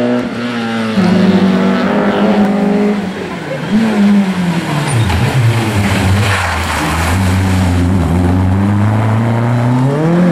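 A second small hatchback rally car accelerates hard out of a tight bend, its engine revving.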